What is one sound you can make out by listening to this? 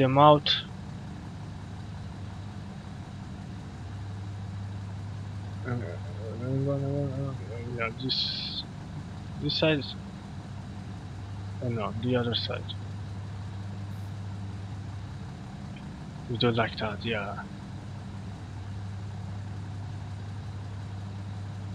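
A train engine hums steadily at a low pitch.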